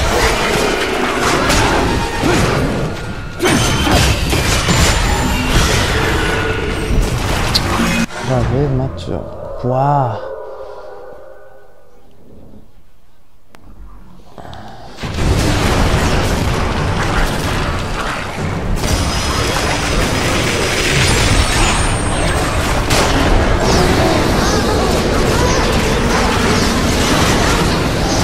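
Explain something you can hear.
Blades clash and slash in a fierce fight.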